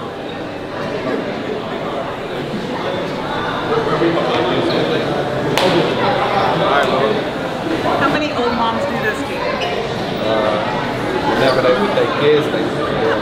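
A crowd murmurs in a busy echoing hall.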